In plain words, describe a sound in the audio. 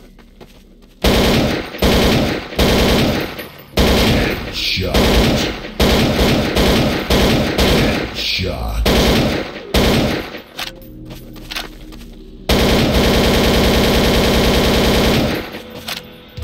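A rifle fires rapid bursts of gunshots.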